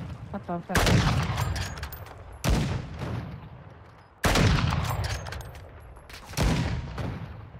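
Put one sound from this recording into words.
Rifle shots ring out one at a time, each with a rolling echo.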